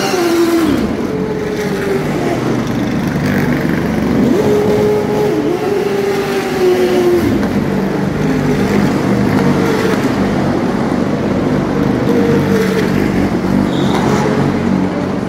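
Race cars drive past one after another, their engines droning and revving.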